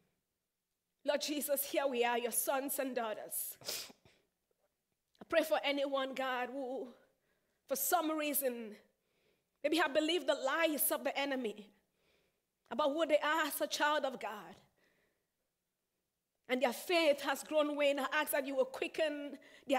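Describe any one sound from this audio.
A young woman sings in phrases with pauses between them.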